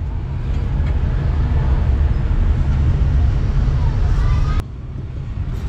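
Traffic rumbles by on a street outdoors.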